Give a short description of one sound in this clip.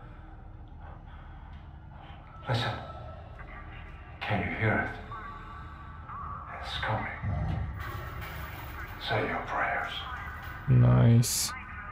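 A man speaks in a low, menacing voice.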